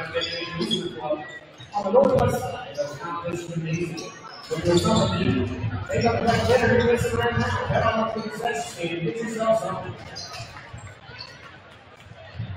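A crowd murmurs and chatters in the stands.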